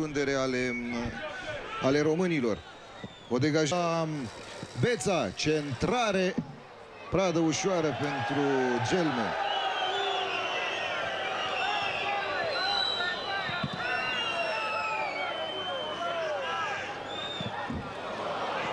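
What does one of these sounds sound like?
A crowd murmurs in a stadium.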